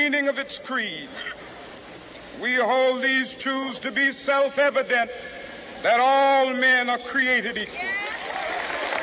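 A man speaks slowly and forcefully through loudspeakers outdoors.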